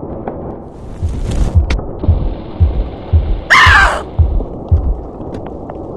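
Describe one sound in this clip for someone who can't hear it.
Heavy footsteps thud steadily across a floor.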